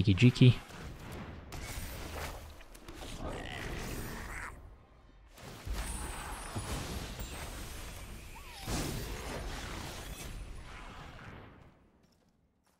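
Game sound effects whoosh and shimmer.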